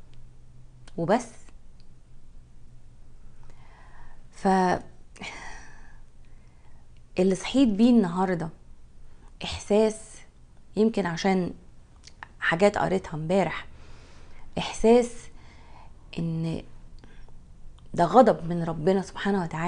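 A woman speaks calmly and closely into a microphone, with pauses.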